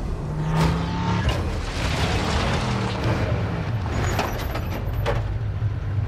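A heavy truck engine roars as the truck drives over dirt.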